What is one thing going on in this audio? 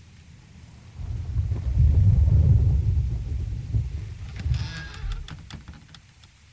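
Heavy wooden doors creak and rumble open.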